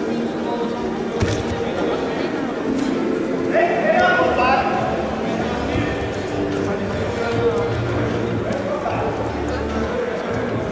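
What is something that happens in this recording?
Feet thud and shuffle on a soft mat.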